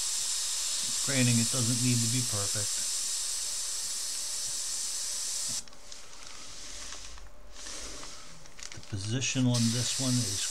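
A middle-aged man talks calmly into a microphone.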